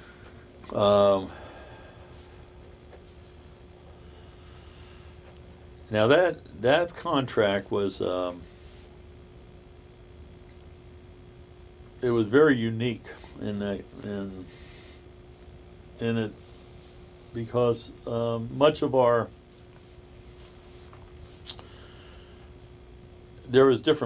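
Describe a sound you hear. A middle-aged man speaks calmly and slowly, close by, in short bursts with pauses.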